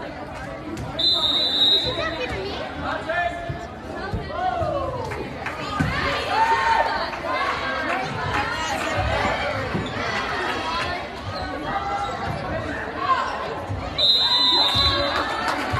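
A whistle blows shrilly.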